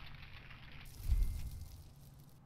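A gun fires with a heavy boom.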